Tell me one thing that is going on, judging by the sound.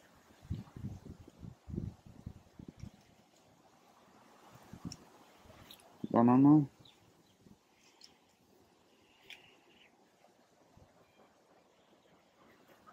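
Bees buzz softly around an open hive.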